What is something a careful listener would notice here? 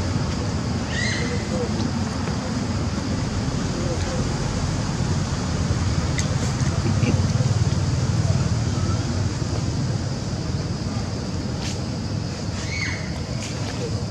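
A baby monkey gives short, high squeaks.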